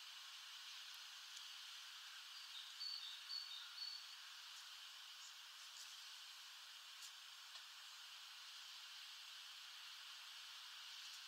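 A small bird pecks and cracks seeds with sharp little taps.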